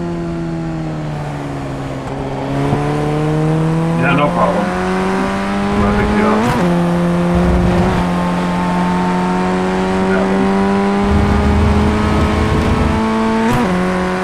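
A racing car engine drones at high revs, dropping in pitch with each gear change and climbing again.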